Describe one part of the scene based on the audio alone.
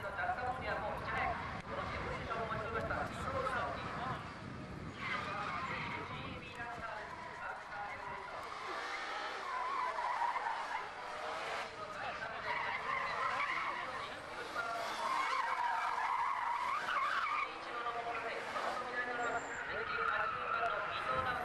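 Tyres screech as a car slides on asphalt.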